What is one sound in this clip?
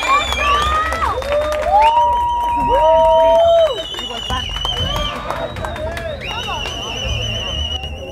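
Loud electronic dance music plays with sliding, warbling synth tones.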